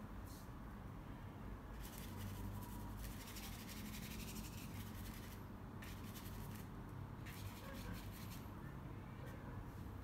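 A brush strokes softly across canvas.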